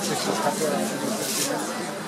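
A crowd murmurs and chatters indoors.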